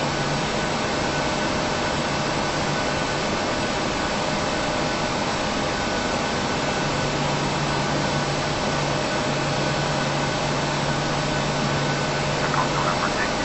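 Jet engines roar steadily as an airliner rolls down a runway.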